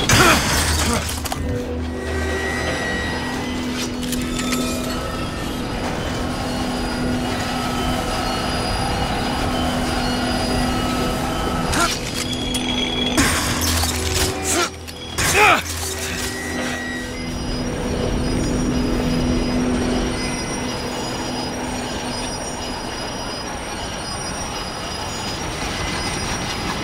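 A metal hook grinds and rattles along a rail at speed.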